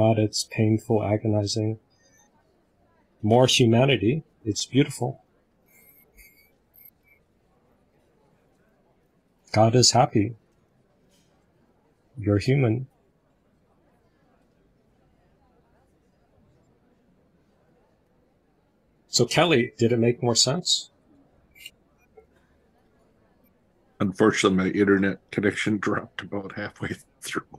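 A man speaks with animation over an online call, in short bursts with pauses.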